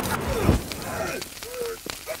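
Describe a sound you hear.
A loud explosion booms and crackles with fire.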